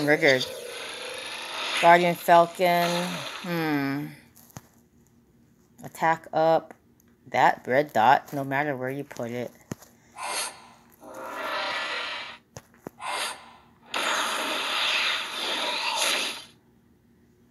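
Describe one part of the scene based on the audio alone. Magic spell effects whoosh and crackle in bursts.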